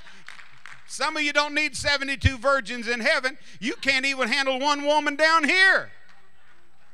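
An elderly man sings loudly through a microphone.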